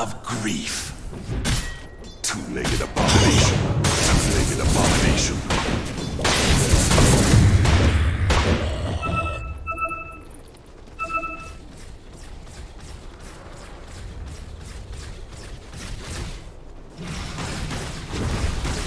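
Game combat effects crash and whoosh in bursts.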